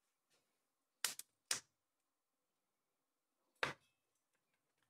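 Metal pieces clink as hands turn a lump over.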